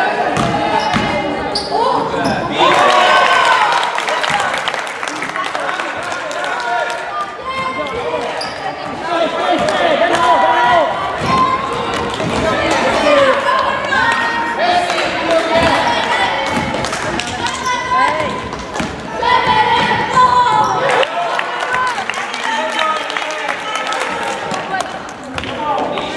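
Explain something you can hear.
Children shout and call out throughout a large echoing hall.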